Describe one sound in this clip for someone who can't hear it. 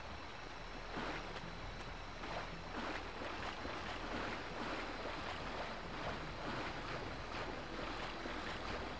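Footsteps rustle through leafy undergrowth at an even pace.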